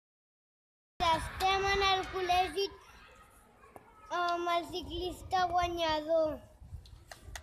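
A young boy speaks into a microphone, close up.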